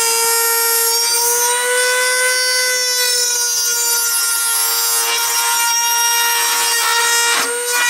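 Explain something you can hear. A drill whines steadily as it bores into metal.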